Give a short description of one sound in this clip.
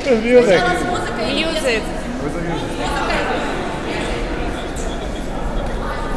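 A young woman speaks with animation to a group in an echoing hall.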